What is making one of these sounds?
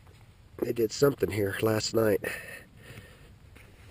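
A hand scrapes and digs in loose dirt close by.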